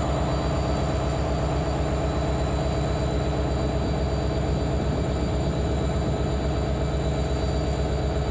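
A locomotive rolls slowly along the rails.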